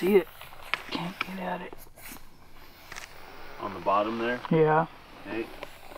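A hand brushes gravel and dirt off a pipe.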